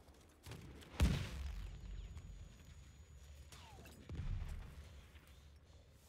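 Explosions boom nearby with deep rumbling.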